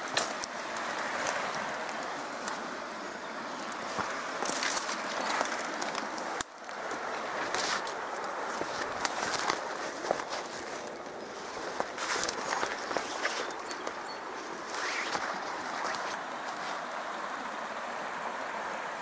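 Footsteps crunch through dry grass and brittle twigs outdoors.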